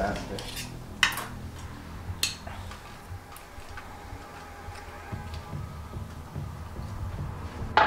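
Metal tongs click against a plate.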